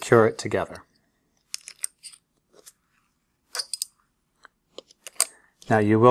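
Metal clips snap shut with small clicks.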